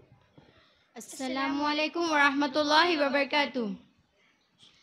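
Young girls sing together loudly through a microphone.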